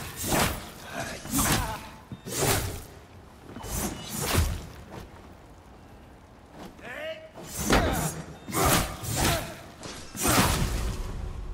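Blades clash and strike repeatedly in a fight.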